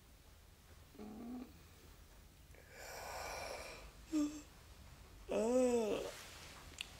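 A young woman moans and groans in her sleep, close by.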